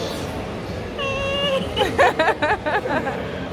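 A young woman laughs and speaks excitedly, close by.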